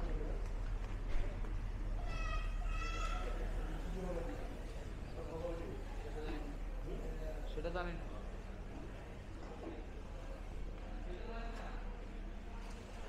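Adults chatter quietly nearby.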